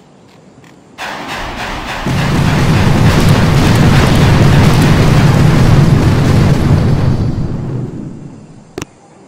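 Explosions rumble and boom in a loud, continuous barrage.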